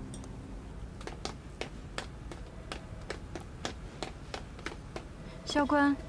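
Footsteps tap down hard stairs.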